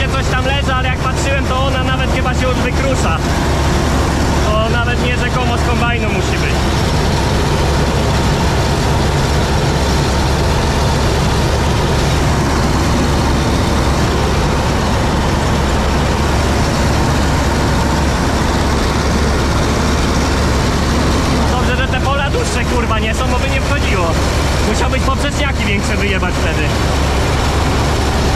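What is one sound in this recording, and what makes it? A combine harvester's engine drones loudly and steadily.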